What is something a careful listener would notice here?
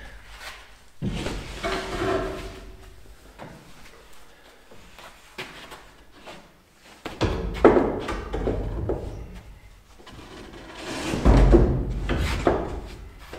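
A large wooden board scrapes and bumps against a wooden frame.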